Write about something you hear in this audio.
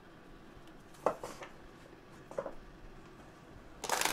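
Playing cards rustle and snap as they are shuffled by hand.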